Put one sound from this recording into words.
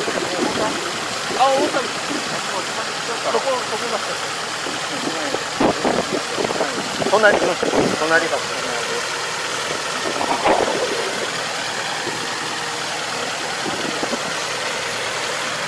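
A tractor engine hums steadily nearby.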